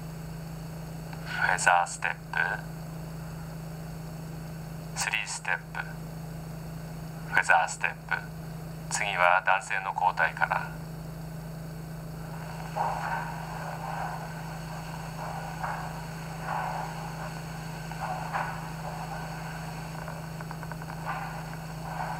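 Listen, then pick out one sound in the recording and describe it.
Dance shoes brush and tap on a wooden floor.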